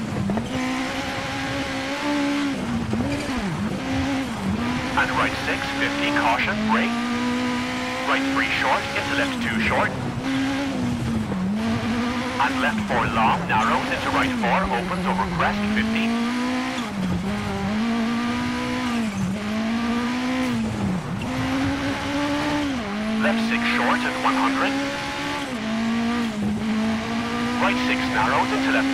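Tyres crunch and skid over snow and gravel.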